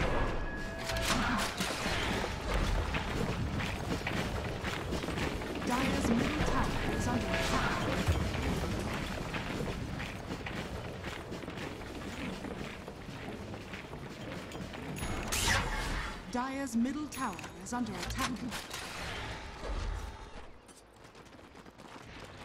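Magic spell effects whoosh and crackle amid a fight.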